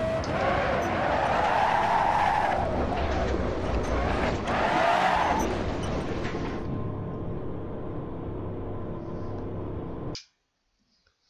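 A racing car engine roars loudly, its pitch rising and falling as it shifts gears, then settles to a steady lower drone.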